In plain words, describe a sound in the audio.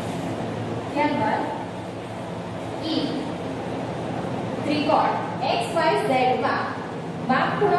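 A woman reads aloud clearly and steadily, close by.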